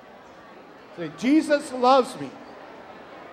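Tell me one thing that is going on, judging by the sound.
An elderly man speaks into a microphone in a large echoing hall.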